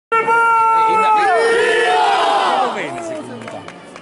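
A large crowd of men cheers loudly in unison, then trails off.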